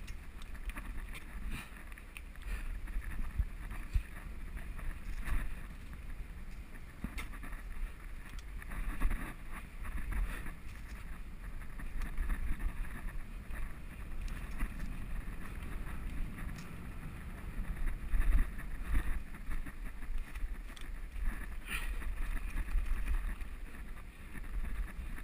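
Wind rumbles against a moving bicycle.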